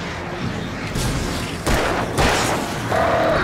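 A gun fires several sharp shots.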